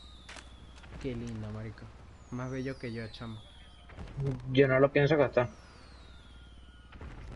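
A firework bursts in the sky with a crack.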